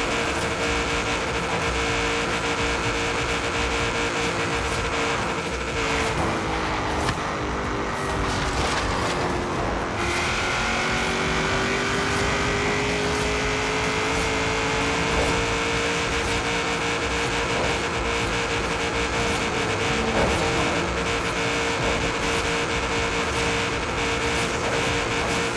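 A car engine roars at high speed, dropping in pitch as it slows and then climbing again as it speeds up.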